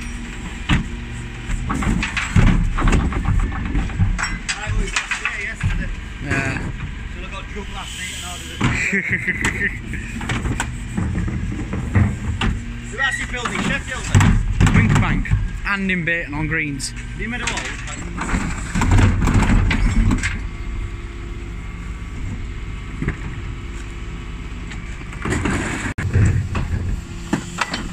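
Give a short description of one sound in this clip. Rubbish tumbles out of a tipped bin with a rattling crash.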